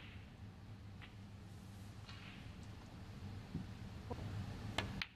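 Snooker balls click against each other softly.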